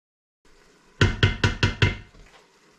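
A wooden spoon knocks against the rim of a metal pot.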